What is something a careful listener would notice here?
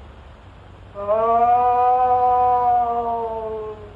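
A man sings a long, wailing note.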